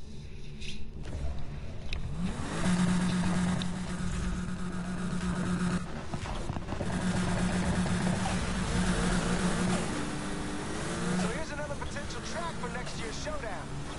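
A car engine revs and roars loudly.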